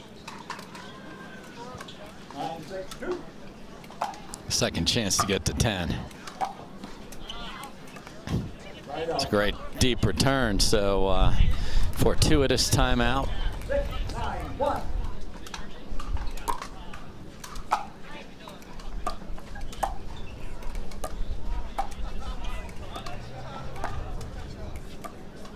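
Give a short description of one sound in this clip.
Paddles pop sharply against a plastic ball in a quick rally.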